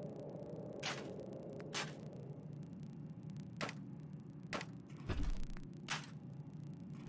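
Short swishing interface clicks sound as items are selected.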